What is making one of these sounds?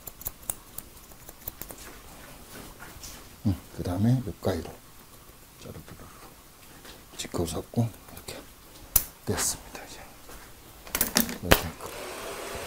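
Scissors snip through hair with quick metallic clicks.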